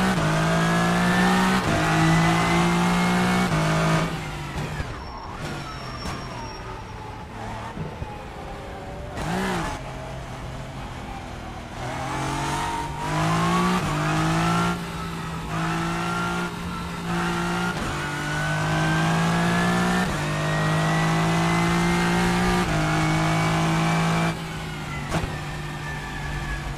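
A racing car engine roars loudly, revving up and dropping with each gear change.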